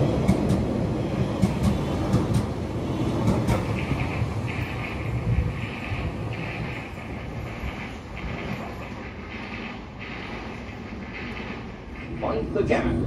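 A train rumbles and clatters as it pulls away and fades into the distance.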